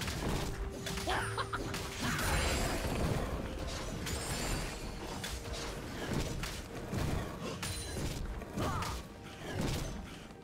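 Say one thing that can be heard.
Game spell effects whoosh and crackle during a fight.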